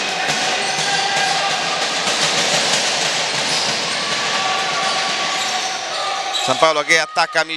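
Sneakers squeak on a hard court in an echoing hall.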